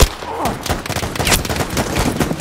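A pistol is reloaded with sharp metallic clicks.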